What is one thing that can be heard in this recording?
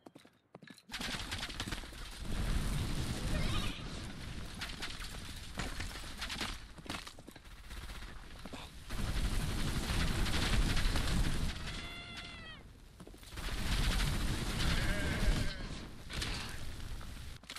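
Fiery blasts boom and roar one after another.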